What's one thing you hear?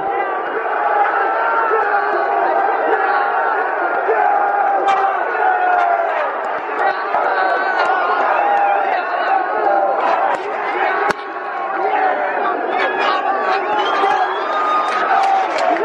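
A large crowd of fans cheers and sings loudly in an open stadium.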